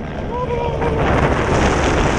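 A man shouts over the wind.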